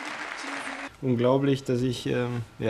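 A young man speaks calmly close to a microphone.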